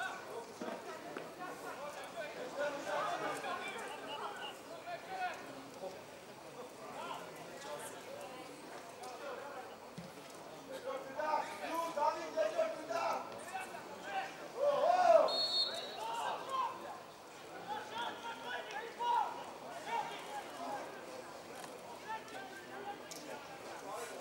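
Players shout to each other across an open outdoor pitch.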